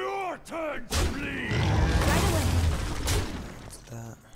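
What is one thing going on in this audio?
A loud magical blast and crash ring out from a game.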